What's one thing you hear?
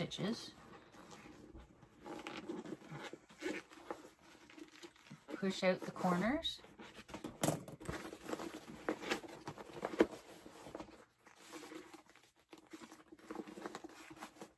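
A zipper rattles and slides.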